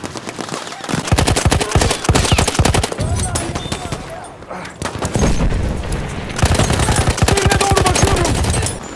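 A heavy machine gun fires rapid bursts close by.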